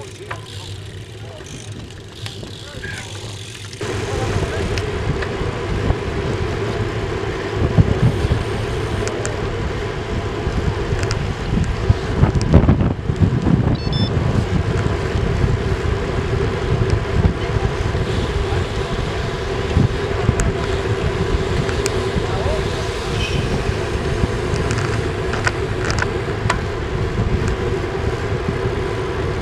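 Wind rushes loudly past a moving bicycle.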